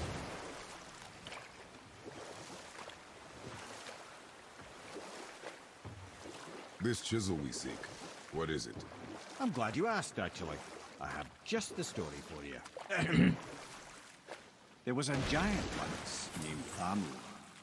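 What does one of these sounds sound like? Oars splash and paddle through water as a boat is rowed.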